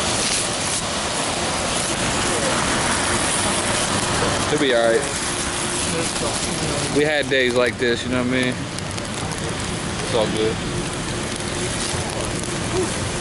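Rain patters steadily on umbrellas outdoors.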